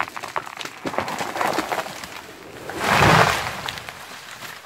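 A tall tree cracks and crashes to the ground nearby.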